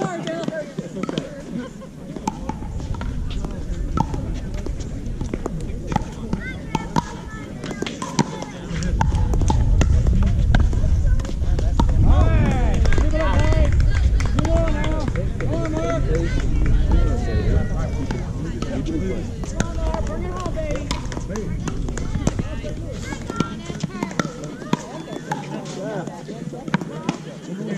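Paddles pop against a plastic ball in sharp, quick hits.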